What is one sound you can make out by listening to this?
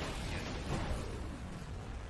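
Electricity crackles loudly.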